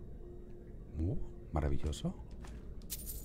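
Coins clink as they are picked up.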